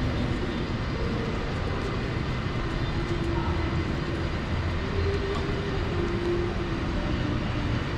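Voices of passers-by murmur in the distance.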